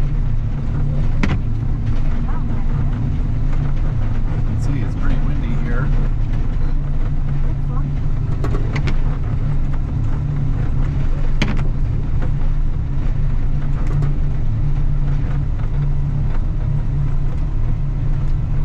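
A heavy engine rumbles steadily as a vehicle drives.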